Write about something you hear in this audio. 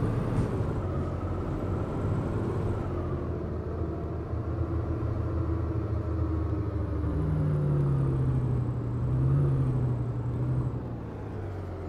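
A diesel articulated city bus engine drives along and slows to a stop.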